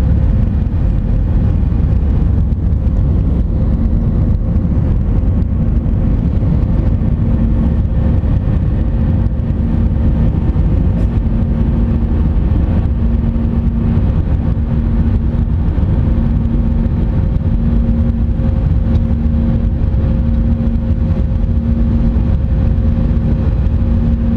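Jet engines roar steadily with a deep, constant rumble inside an airliner cabin in flight.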